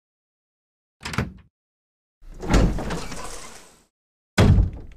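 A heavy wooden door creaks slowly open.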